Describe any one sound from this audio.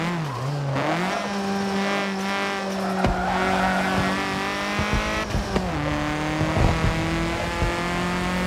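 A racing car engine roars steadily, its pitch shifting with gear changes.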